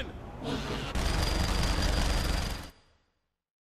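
A minigun fires in a rapid roar.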